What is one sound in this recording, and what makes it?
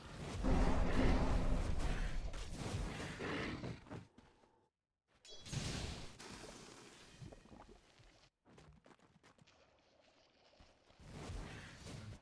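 Magical spell effects whoosh and crackle during a fight.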